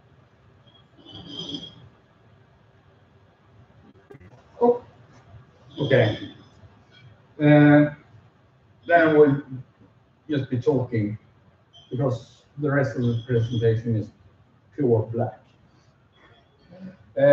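A man speaks calmly to an audience in a room with a slight echo.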